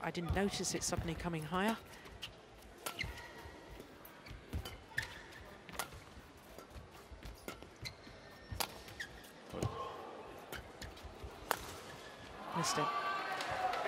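Rackets smack a shuttlecock back and forth in a quick rally.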